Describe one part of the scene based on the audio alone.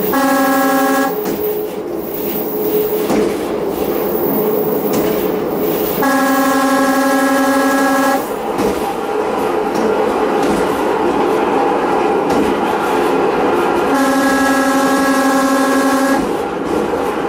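A train horn sounds three long blasts.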